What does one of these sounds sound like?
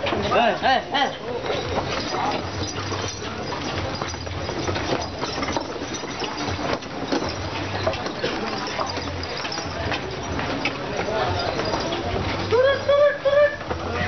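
Horse hooves clop on a dirt road.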